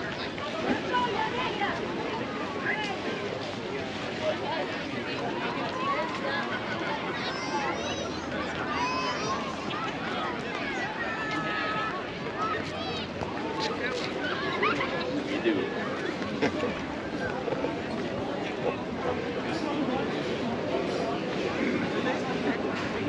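A busy crowd of many people chatters and calls out outdoors.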